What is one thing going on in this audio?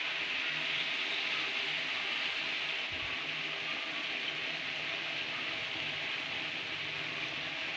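Vegetables sizzle and crackle in hot oil in a pan.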